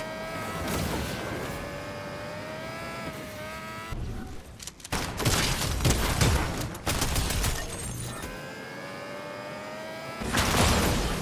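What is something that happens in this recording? A game vehicle's engine hums as it speeds along.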